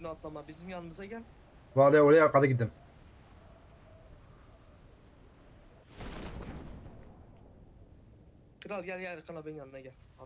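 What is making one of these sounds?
A man speaks with animation close to a microphone, sometimes shouting.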